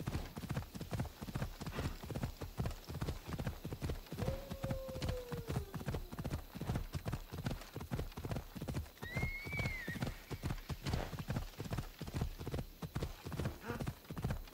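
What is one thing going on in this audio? Horse hooves thud rapidly on a dirt path.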